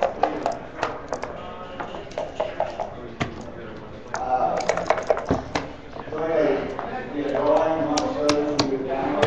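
Dice tumble and knock onto a board.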